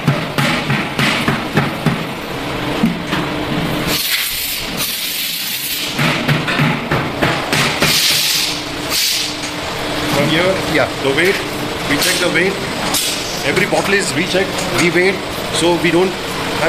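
A conveyor belt hums and rattles steadily.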